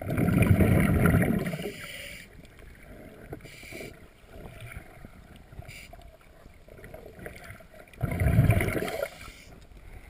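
Water rumbles and churns, heard muffled from underwater.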